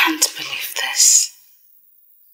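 A young woman speaks angrily up close.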